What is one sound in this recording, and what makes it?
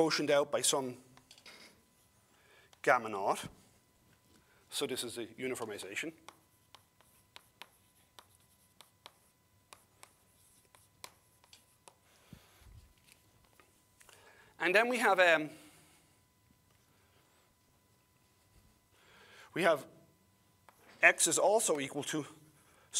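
An older man speaks calmly in short phrases, with pauses between them.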